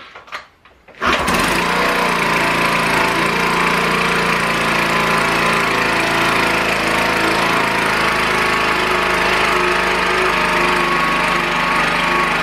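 A small scooter engine starts and idles loudly and steadily.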